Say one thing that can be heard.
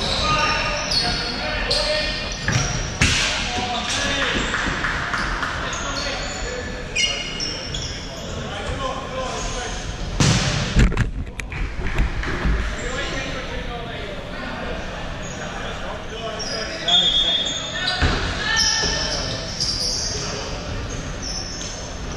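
A ball thuds on the floor and is kicked.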